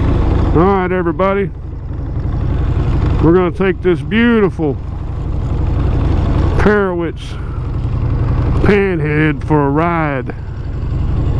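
A motorcycle engine revs up sharply in short bursts and drops back.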